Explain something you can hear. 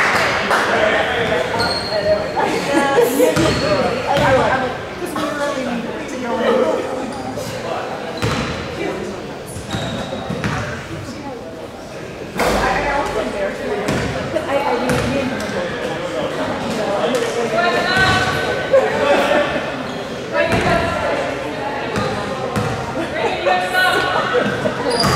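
Young girls shout and call out to each other in an echoing hall.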